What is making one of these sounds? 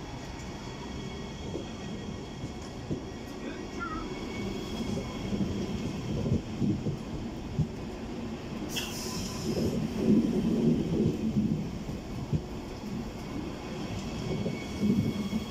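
A passenger train rumbles past at speed, its wheels clattering over the rails.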